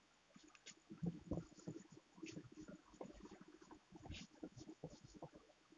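A cloth eraser rubs across a whiteboard.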